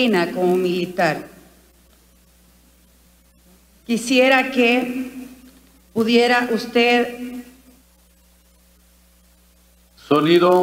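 A woman speaks into a microphone in short, measured phrases with pauses between them.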